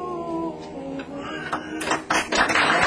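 A group of men sings together in harmony.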